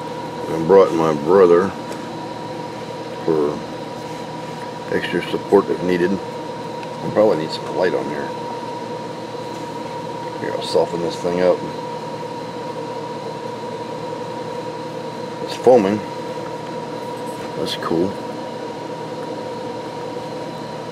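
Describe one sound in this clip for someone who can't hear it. A finger rubs and squeaks softly against the inside of a metal cup.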